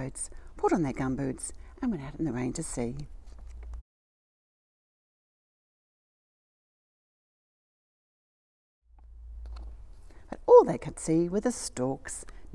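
An elderly woman reads aloud calmly and expressively, close by.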